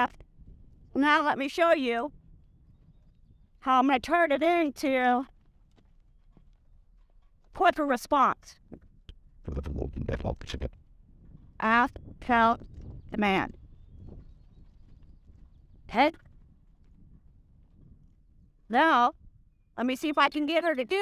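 Horse hooves thud softly on grass.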